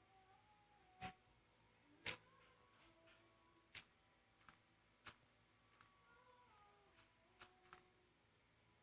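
Blocks thud softly as they are placed, one after another.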